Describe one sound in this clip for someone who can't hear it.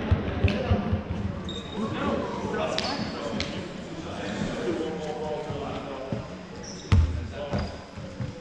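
Players call out to each other across the hall.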